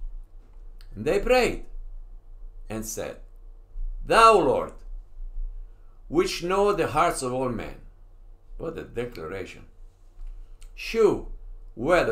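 An elderly man reads out slowly and steadily, close to a microphone, with pauses between phrases.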